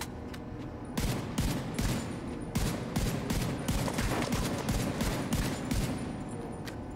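Rifle shots fire in quick bursts and echo.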